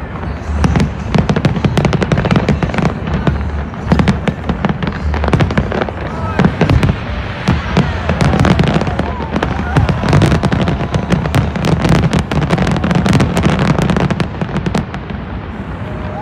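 Fireworks boom and crackle rapidly overhead.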